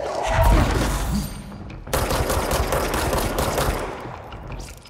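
Heavy blasts boom and rumble.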